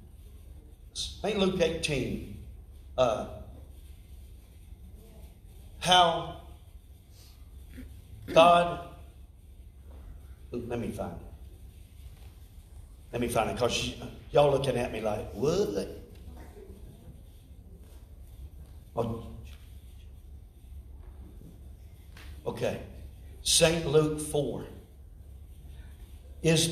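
An older man speaks calmly through a microphone in a large echoing hall, with pauses between phrases.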